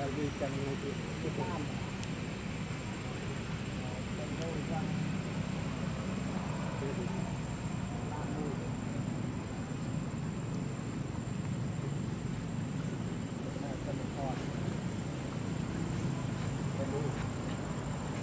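A baby monkey squeaks softly close by.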